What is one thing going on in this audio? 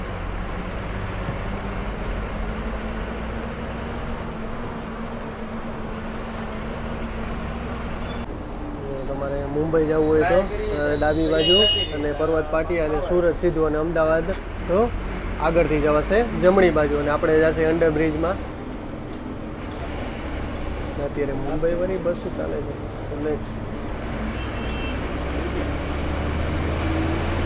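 A vehicle's engine rumbles steadily while driving.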